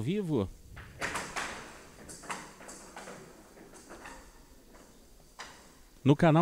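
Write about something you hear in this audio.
A paddle strikes a rattling ball sharply.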